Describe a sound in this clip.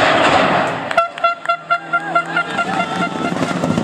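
A rally car's exhaust crackles with sharp backfires.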